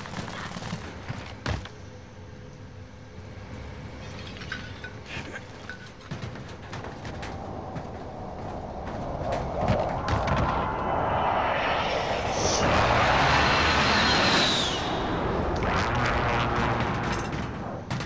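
Footsteps thud on a metal roof.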